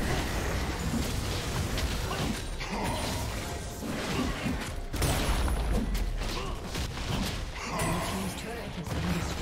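Game spells and attacks crackle and clash in a fight.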